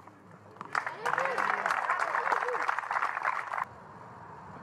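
A small crowd applauds.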